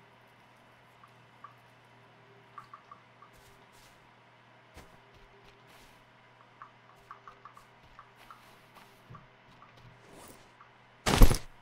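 Footsteps crunch softly on sand and grass.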